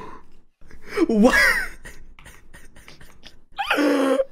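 A young man laughs loudly into a microphone.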